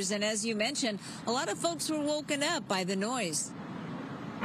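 A middle-aged woman speaks clearly and briskly into a microphone.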